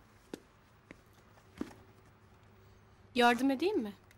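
A bag rustles and knocks as it is handled.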